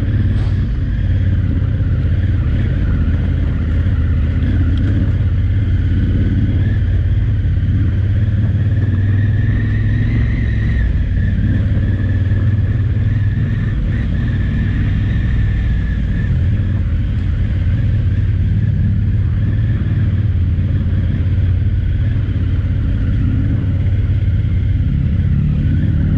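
A motorcycle engine rumbles steadily close by.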